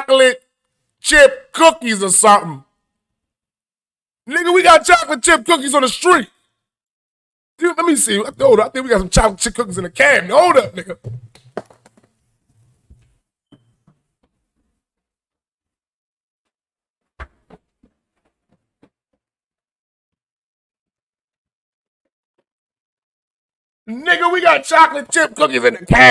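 A young man talks with animation into a microphone, in bursts with pauses.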